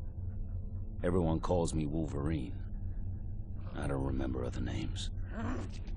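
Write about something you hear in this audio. A man speaks in a low, gruff voice close by.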